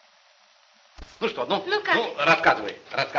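An elderly man speaks cheerfully.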